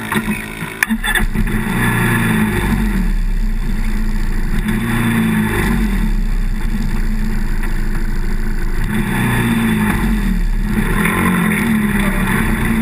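An ATV engine drones, speeding up and easing off.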